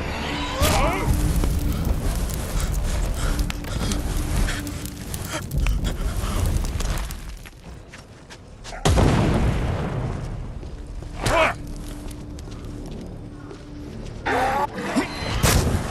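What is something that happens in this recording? A burning figure screams and groans.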